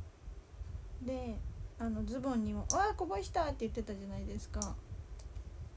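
A young woman speaks softly, close to a microphone.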